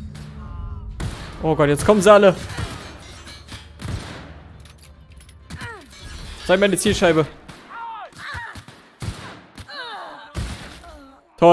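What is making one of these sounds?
Guns fire in sharp, quick shots.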